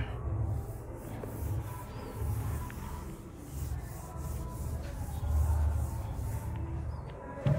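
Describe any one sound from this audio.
A man wipes a whiteboard with quick rubbing strokes.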